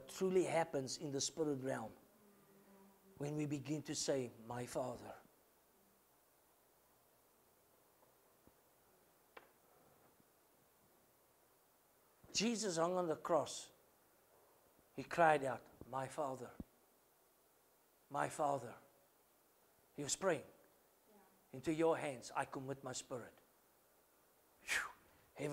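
A middle-aged man speaks calmly in phrases with long pauses, in a room with a slight echo.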